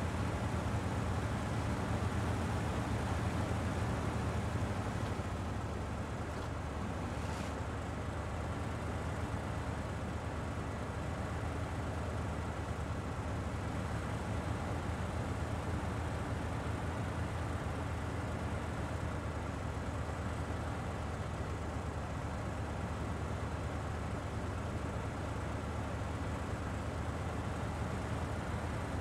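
A heavy truck engine rumbles and strains steadily at low speed.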